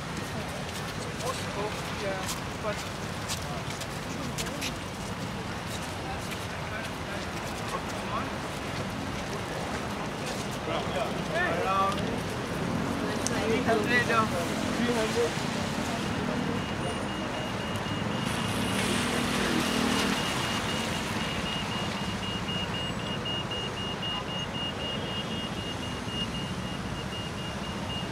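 City traffic rumbles steadily nearby.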